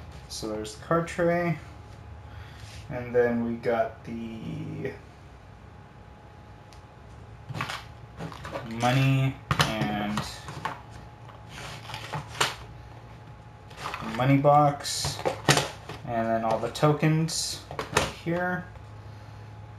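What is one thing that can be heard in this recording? Cardboard boxes and game pieces knock and rustle on a table.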